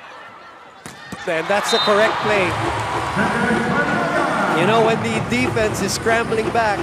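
Young women shout and cheer excitedly up close.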